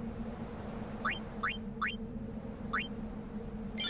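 Short electronic menu beeps sound in quick succession.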